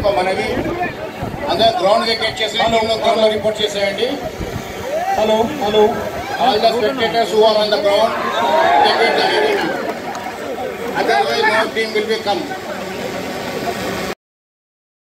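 A crowd of men cheers and shouts loudly, close by.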